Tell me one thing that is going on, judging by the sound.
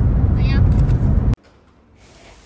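A car engine hums while driving.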